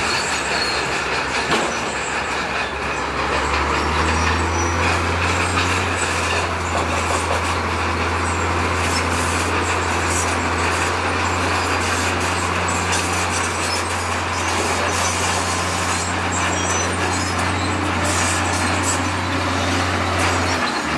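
A bulldozer engine rumbles steadily nearby.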